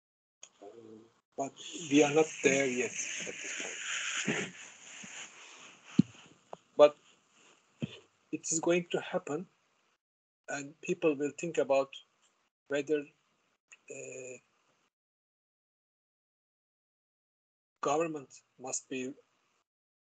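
An elderly man speaks calmly through an online call, with pauses.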